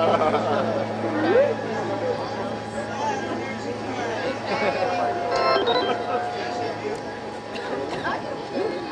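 A band plays live music, heard from within a crowd.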